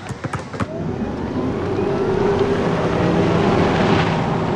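A car drives past with its engine humming.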